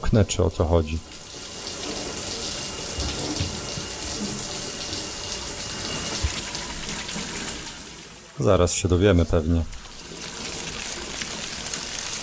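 Shower water sprays and splashes steadily.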